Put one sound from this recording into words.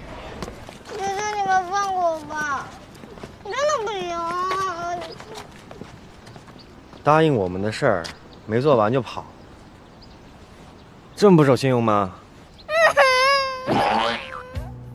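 A young boy speaks in a high, pleading voice close by.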